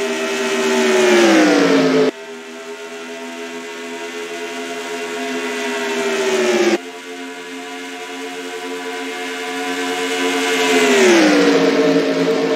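Race car engines roar loudly and rise and fall in pitch as cars pass close by.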